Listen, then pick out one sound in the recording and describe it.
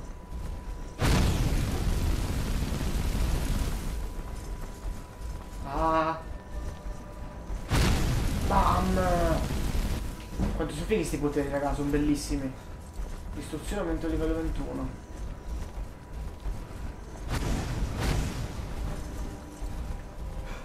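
A fire spell roars in bursts.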